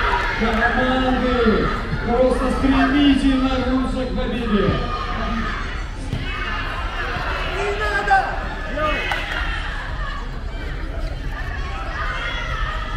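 Basketball players' sneakers squeak on a sports court.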